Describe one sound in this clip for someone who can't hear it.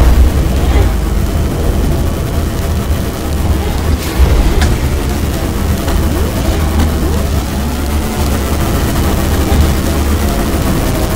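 A racing craft's engine roars steadily at high speed.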